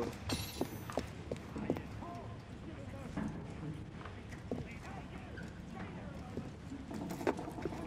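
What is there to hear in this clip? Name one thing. Footsteps patter quickly on cobblestones.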